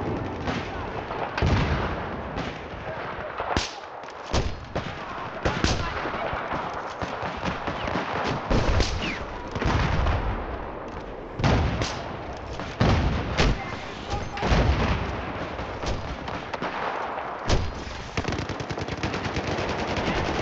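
Gunfire and explosions rumble in the distance.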